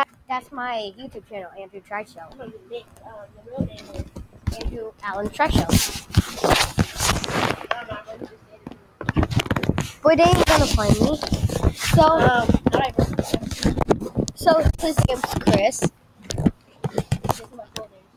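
A boy talks with animation close to the microphone.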